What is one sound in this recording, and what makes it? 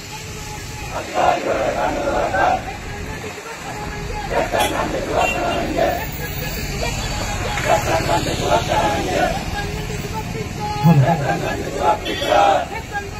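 A crowd of men chants slogans loudly in unison outdoors.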